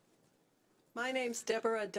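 A woman speaks loudly and with animation into a microphone.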